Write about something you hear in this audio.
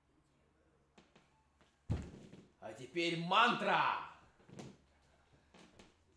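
Feet thump on a wooden floor.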